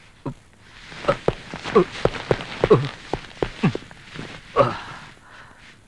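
A man cries out and groans in pain.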